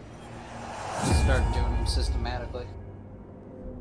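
A deep whooshing rumble swells and fades.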